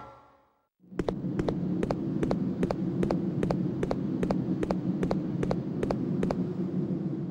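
Quick footsteps clatter on a metal walkway.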